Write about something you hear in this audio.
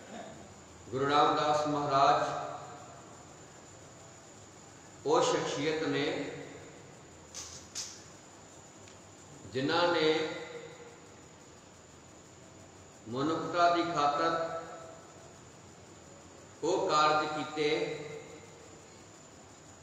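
A man sings slow, drawn-out phrases into a microphone, with pauses between them.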